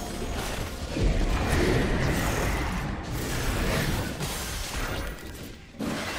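Game fighting sounds clash and whoosh.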